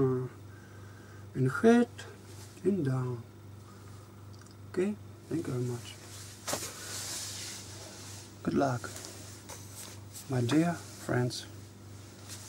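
A man speaks with animation close by, in short bursts with pauses.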